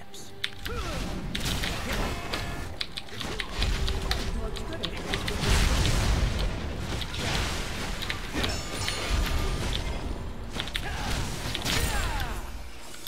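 Video game combat effects clash and zap in quick bursts.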